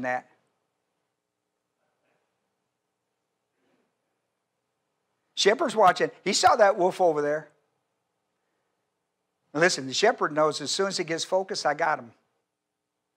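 An elderly man speaks with animation into a microphone, with pauses between phrases.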